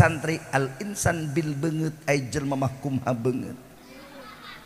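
A middle-aged man speaks with animation through a microphone over loudspeakers.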